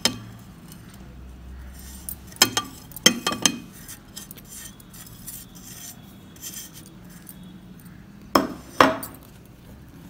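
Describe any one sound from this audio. A plate knocks against a glass bowl as powder is tipped in.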